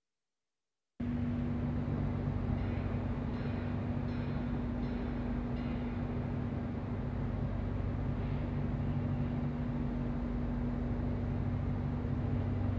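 Machinery hums steadily in a large echoing hall.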